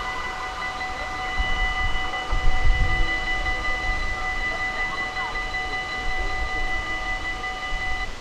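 A crossing barrier creaks as it rises.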